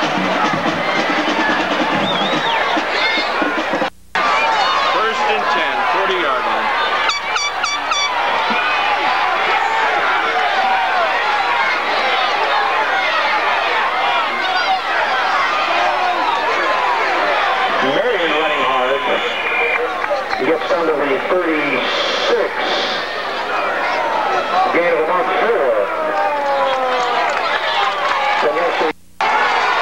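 A crowd of spectators cheers and chatters loudly outdoors.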